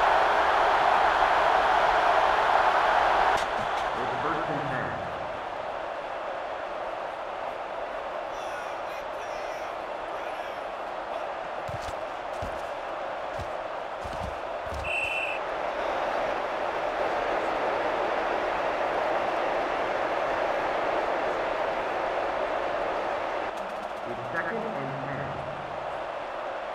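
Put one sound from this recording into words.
A stadium crowd roars steadily, loudest at the start.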